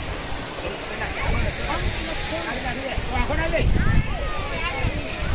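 Women and children chatter and call out nearby, outdoors.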